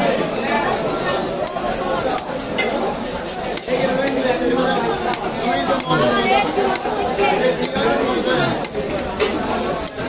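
A knife scrapes scales off a fish with quick rasping strokes.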